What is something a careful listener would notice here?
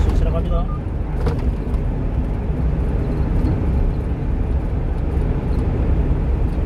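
Tyres roll steadily over the road.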